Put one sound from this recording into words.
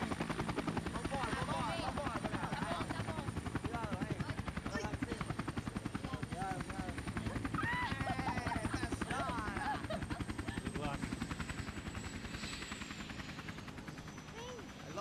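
A helicopter engine roars with rapidly thumping blades.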